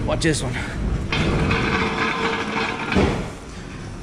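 A metal stand scrapes across a concrete floor.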